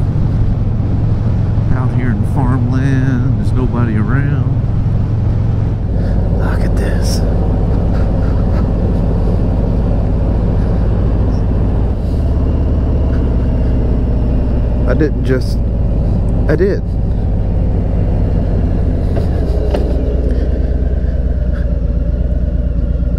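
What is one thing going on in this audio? A motorcycle engine rumbles steadily while riding.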